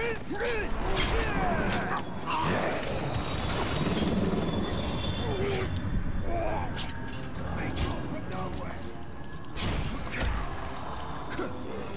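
Orcs grunt and shout as they are struck.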